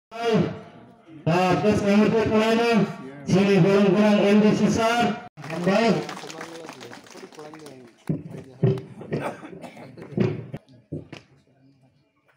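A man speaks loudly through a microphone and loudspeaker.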